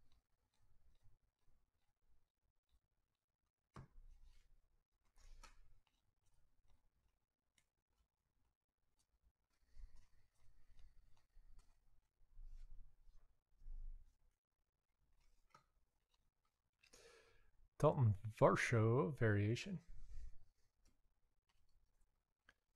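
Trading cards rustle and flick softly as they are shuffled through by hand.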